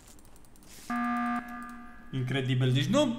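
A game alarm blares for an emergency meeting.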